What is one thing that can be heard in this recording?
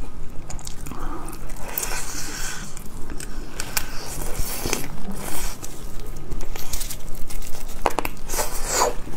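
A young woman chews and smacks her lips close to the microphone.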